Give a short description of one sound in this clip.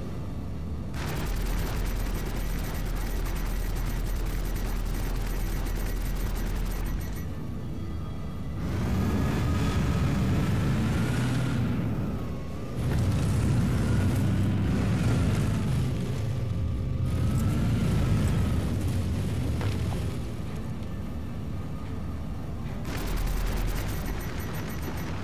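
Heavy guns fire in rapid, thudding bursts.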